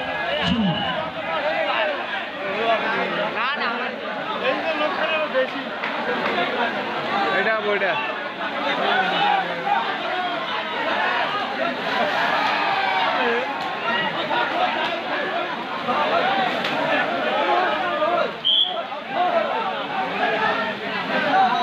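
A large outdoor crowd chatters and shouts continuously.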